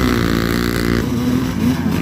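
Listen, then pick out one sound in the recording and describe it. Motorcycle tyres splash through mud and water.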